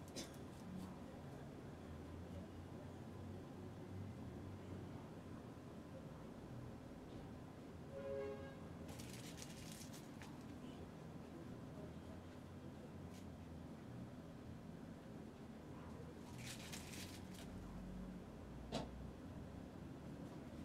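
A paintbrush scrapes softly across canvas.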